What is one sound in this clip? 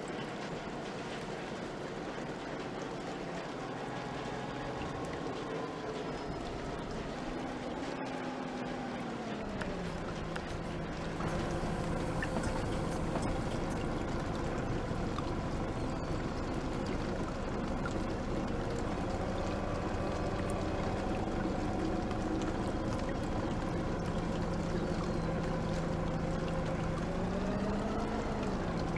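A bus engine hums and its pitch rises and falls as it drives and slows.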